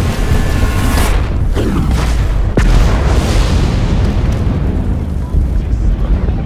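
A huge explosion booms and rumbles away.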